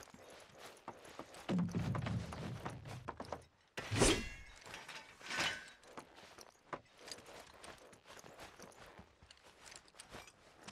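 Footsteps thud quickly up wooden stairs.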